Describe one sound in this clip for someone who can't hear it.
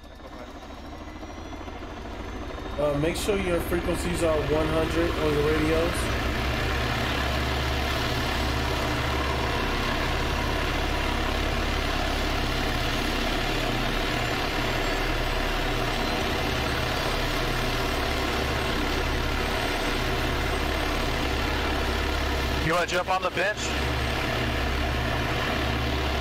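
A helicopter's engine whines and its rotor thumps steadily close by.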